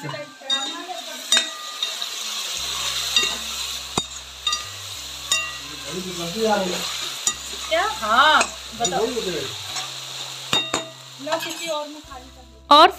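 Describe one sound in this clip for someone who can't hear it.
Vegetables sizzle as they fry in a pan.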